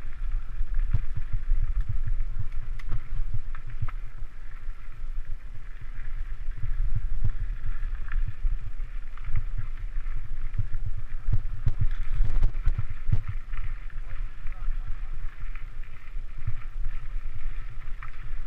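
Wind rumbles against a moving microphone outdoors.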